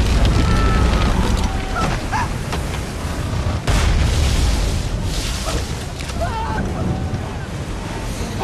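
Sails flap loudly in the wind.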